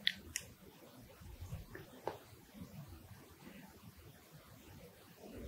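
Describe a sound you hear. A woman chews food close to a microphone.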